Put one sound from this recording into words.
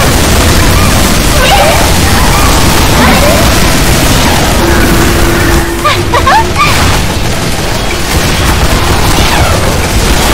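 Gunfire rattles in a game.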